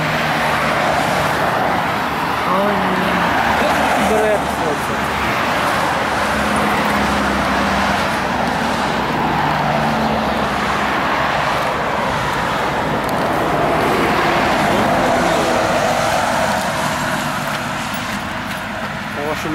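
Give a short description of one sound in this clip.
Traffic rushes past steadily on a nearby road outdoors.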